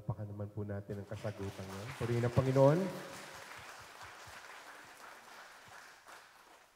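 A crowd of guests applauds.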